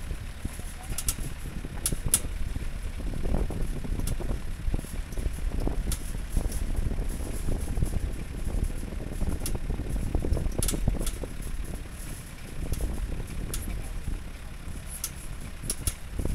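A vehicle's metal frame rattles and clanks over bumps.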